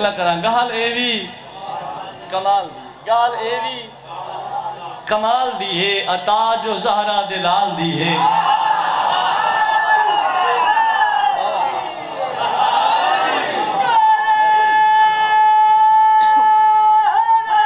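A young man recites with passion into a microphone, his voice ringing through loudspeakers.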